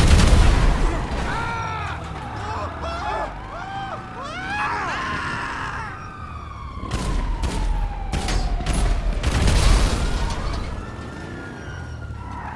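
Sirens wail.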